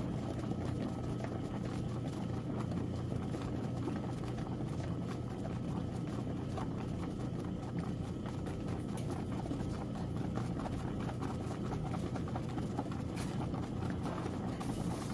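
Soapy water sloshes and churns as a washing machine agitates.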